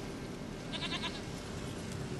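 A goat bleats nearby.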